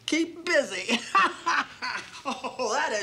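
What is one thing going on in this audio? An elderly woman laughs loudly close by.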